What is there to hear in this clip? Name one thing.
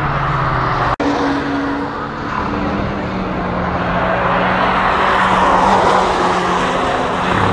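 A small car's engine revs hard as the car races by.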